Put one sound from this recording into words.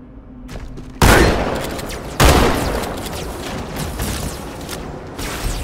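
A rifle fires loud bursts of shots, with a ringing echo.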